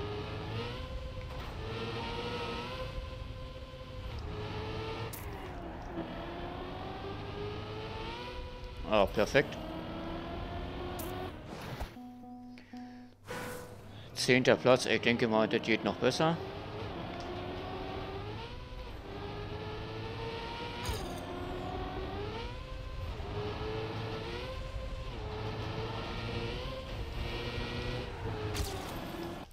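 A racing car engine revs high, its pitch rising and falling as it shifts gears.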